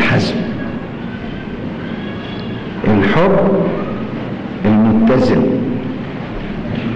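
An elderly man speaks slowly and firmly into a microphone.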